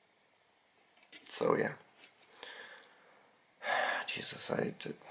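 Plastic parts of a light bulb click and rattle in a hand.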